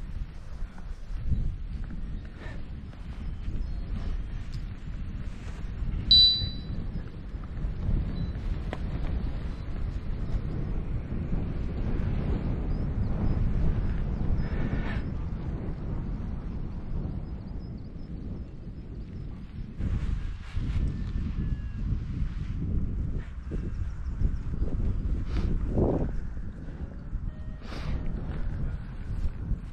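Wind rushes steadily past, outdoors.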